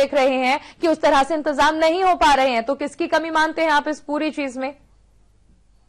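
A young woman speaks clearly and briskly into a microphone.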